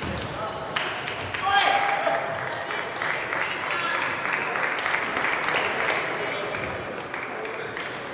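A crowd of players murmurs and calls out in a large echoing hall.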